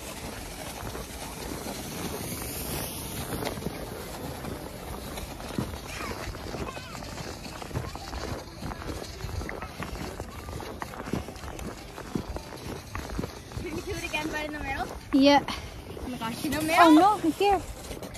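A young woman talks close to the microphone, outdoors.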